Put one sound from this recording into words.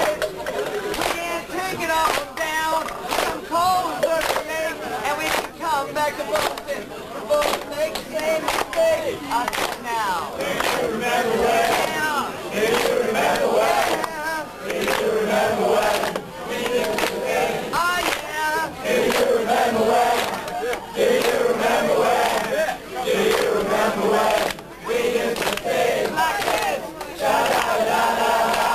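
A rock band plays loudly in an echoing room.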